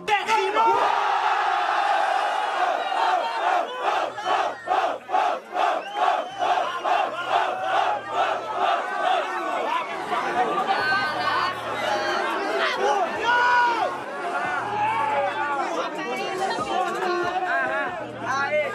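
A young man raps forcefully into a microphone, heard through loudspeakers.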